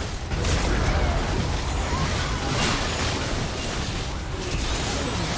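Magic blasts and explosions crackle and boom in a video game battle.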